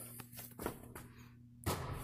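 A basketball swishes through a hoop's net.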